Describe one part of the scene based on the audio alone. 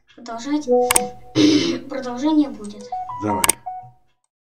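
A mouse button clicks.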